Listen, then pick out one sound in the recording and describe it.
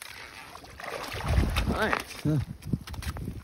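A fish flops and slaps on the ice.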